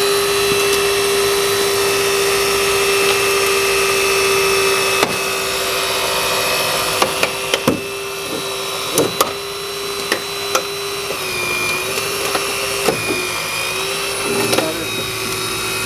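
A hydraulic rescue tool whines steadily as it runs.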